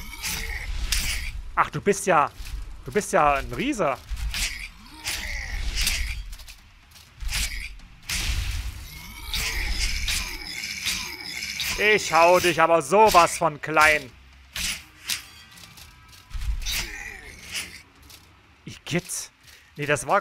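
Metal weapons clash and strike in quick, sharp blows.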